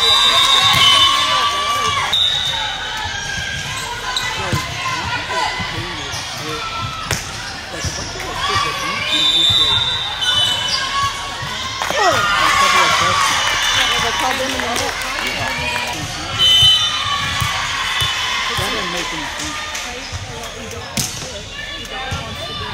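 Shoes squeak sharply on a gym floor.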